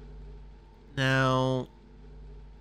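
A computer terminal gives a loud buzzing beep as it switches on.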